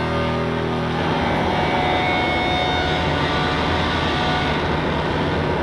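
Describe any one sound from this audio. A band starts playing loudly with drums and guitars.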